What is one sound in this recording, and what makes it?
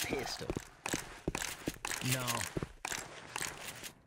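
A shotgun is pumped and reloaded with metallic clicks.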